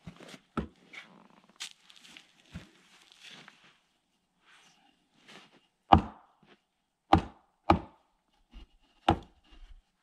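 A wooden baton knocks sharply on a blade, splitting wood.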